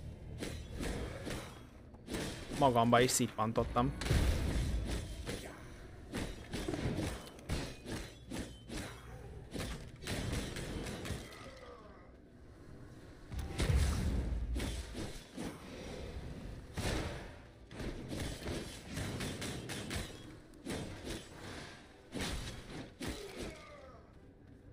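Game sword strikes and spell effects whoosh and clang.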